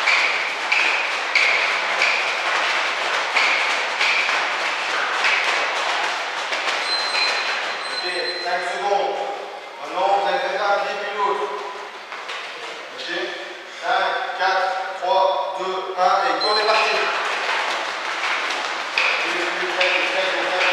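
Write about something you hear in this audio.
Sneakers shuffle and squeak quickly on a hard floor.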